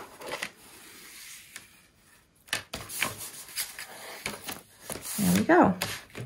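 Hands rub and crease a sheet of paper.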